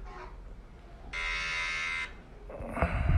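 A phone plays a buzzing hair clipper sound.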